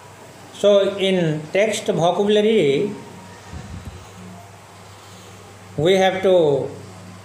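A man speaks clearly and slowly, close by, in short phrases with pauses.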